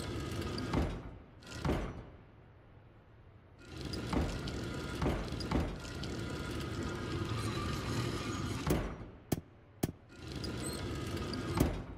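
Stained glass pieces click and grind as they rotate into place.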